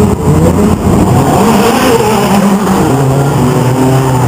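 A racing car drives past close by with a roaring engine.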